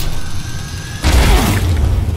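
A gun fires loudly.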